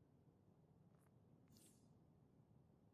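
A short electronic chime sounds as an object is placed.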